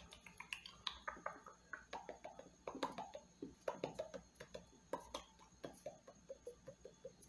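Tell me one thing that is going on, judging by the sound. A young woman makes soft mouth clicks close to a microphone.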